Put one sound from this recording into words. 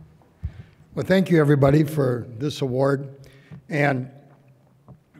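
An elderly man speaks calmly into a microphone over loudspeakers.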